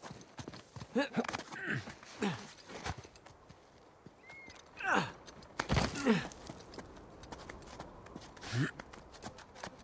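Hands grip and scrape against rough stone while climbing.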